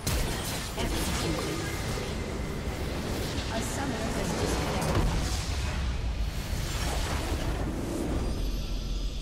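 Game explosions and spell blasts crash loudly in a busy fight.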